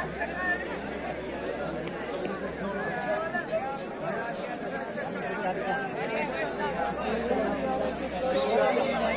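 A crowd of young men shout and cheer excitedly outdoors.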